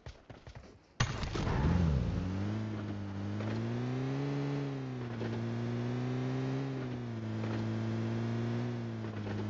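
A vehicle engine starts and drives, revving up and down.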